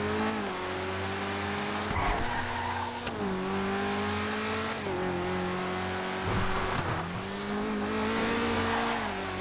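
A sports car engine roars steadily, its pitch shifting as the gears change.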